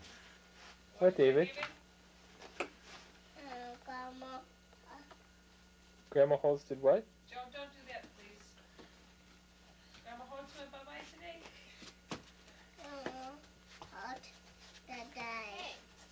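A small child talks in a high voice close by.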